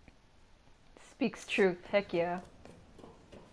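A young woman speaks briefly into a microphone with animation.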